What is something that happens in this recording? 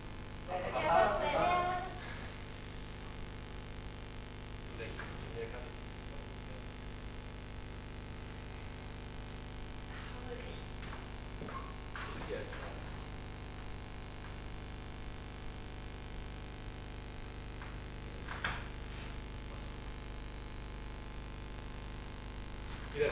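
A man speaks on a stage, heard from a distance in a large hall.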